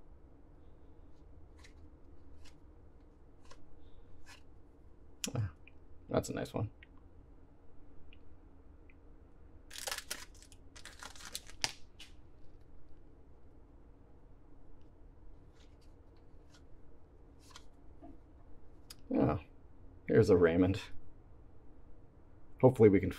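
Trading cards slide and flick against each other in quick soft clicks.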